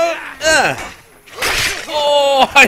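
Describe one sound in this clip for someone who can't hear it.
A sword swings and strikes with a sharp clang.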